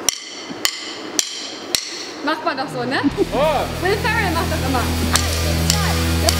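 A drummer strikes drums and cymbals with sticks.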